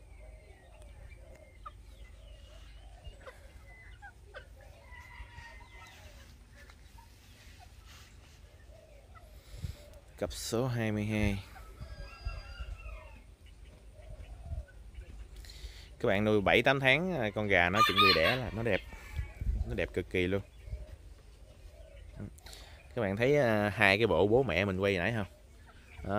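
Chickens cluck softly nearby.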